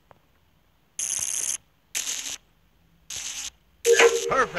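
Electric wires snap into place in a video game.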